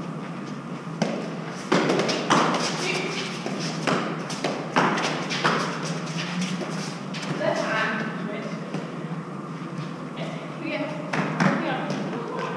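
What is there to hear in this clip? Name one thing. A fives ball smacks off a gloved hand and against concrete walls, echoing in a walled court.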